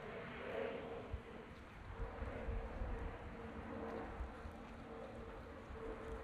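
Wind buffets outdoors in low gusts.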